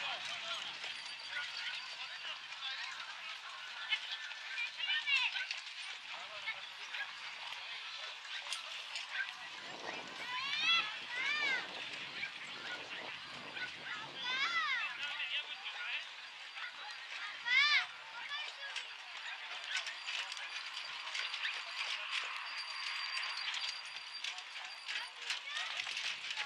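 A horse's hooves thud on packed dirt at a brisk trot.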